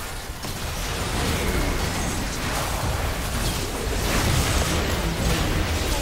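Video game spell effects whoosh and crackle during a busy battle.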